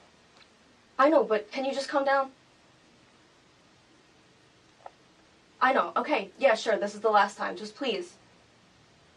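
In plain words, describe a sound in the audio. A young woman talks calmly on a phone nearby.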